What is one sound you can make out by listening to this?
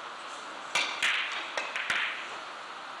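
Billiard balls click against each other and thud off the cushions.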